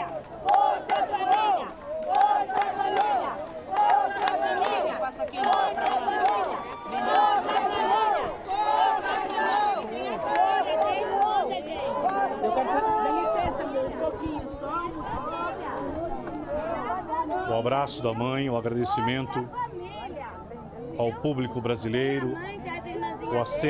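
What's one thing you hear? A crowd sings together outdoors.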